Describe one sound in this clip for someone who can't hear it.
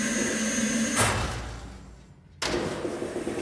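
A metal switch clicks.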